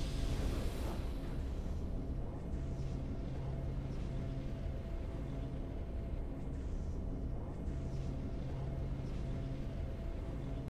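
A soft, steady musical tune plays with low sustained notes.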